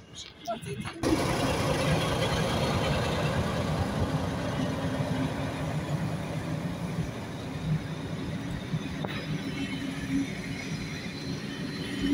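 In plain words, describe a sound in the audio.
Diesel locomotives drone as they haul a train away.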